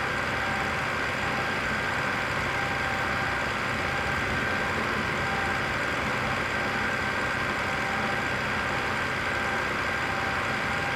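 Tyres roll over asphalt with a steady road noise.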